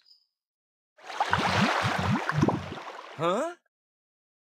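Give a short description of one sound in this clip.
Water sprays in a short hissing gush.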